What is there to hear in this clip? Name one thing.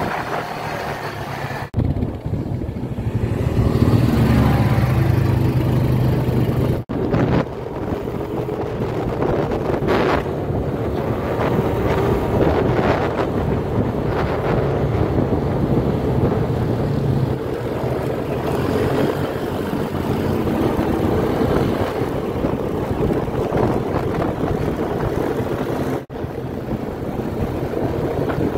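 Quad bike engines roar and rev nearby.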